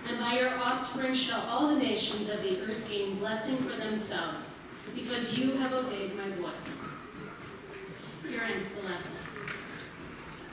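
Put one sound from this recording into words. A choir sings in a large echoing hall.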